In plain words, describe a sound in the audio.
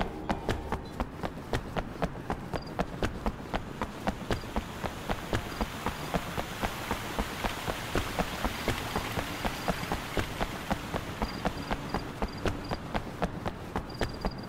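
Quick footsteps run over hard stone.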